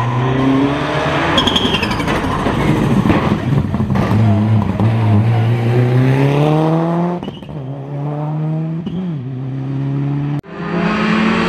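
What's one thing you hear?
A rally car engine roars close by, revving hard as it speeds past.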